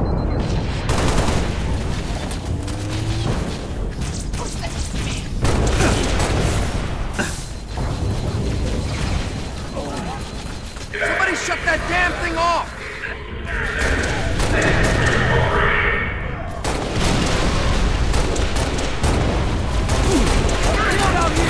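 Gunfire from a game rattles and bangs.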